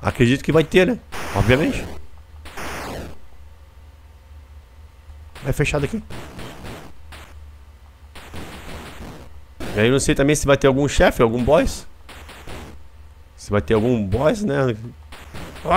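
Retro electronic game sound effects beep and buzz.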